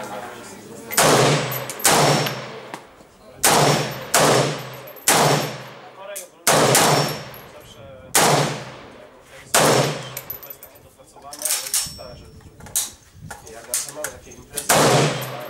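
Rifle shots ring out one after another outdoors, each with a short echo.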